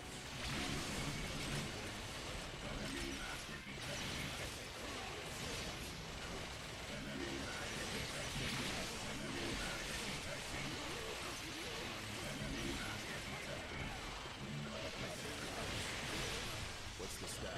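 Fighting sound effects clash and crackle in a video game.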